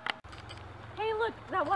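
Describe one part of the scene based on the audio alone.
A young woman speaks outdoors.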